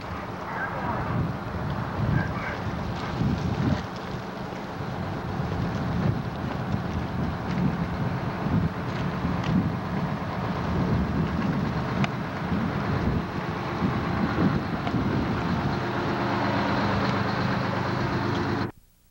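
A fire truck's engine rumbles loudly close by.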